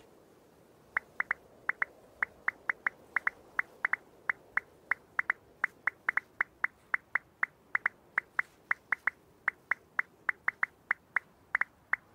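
A crossbow clicks and fires in quick, even beats.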